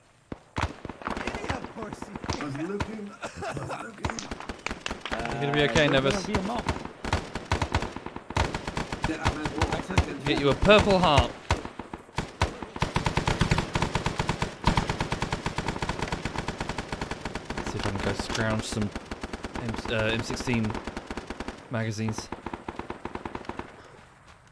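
Gunshots crack repeatedly nearby.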